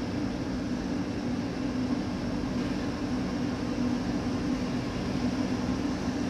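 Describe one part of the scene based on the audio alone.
An electric train hums steadily as it rolls along the rails.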